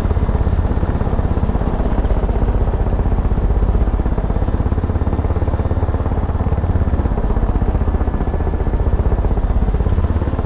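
A helicopter engine whines steadily.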